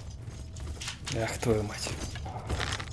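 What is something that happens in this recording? A creature growls and snarls nearby.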